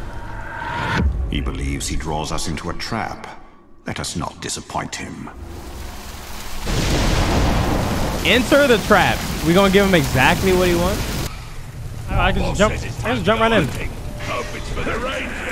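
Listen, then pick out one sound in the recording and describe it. A young man talks with animation into a close microphone.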